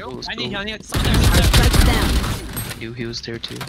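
Rapid gunshots fire in a short burst.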